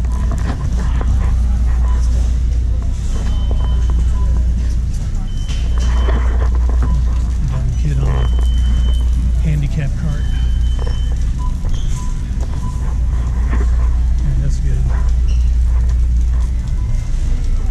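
A shopping cart rattles as it rolls across a hard floor.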